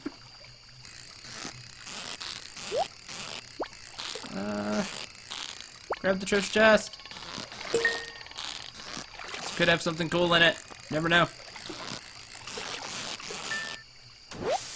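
A fishing reel whirs steadily as a fish is reeled in.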